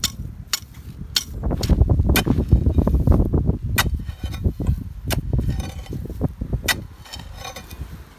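A machete blade strikes and chops into dry earth again and again.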